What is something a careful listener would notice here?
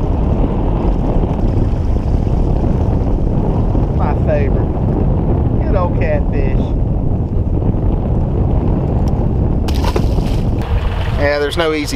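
Wind blows hard outdoors over open water.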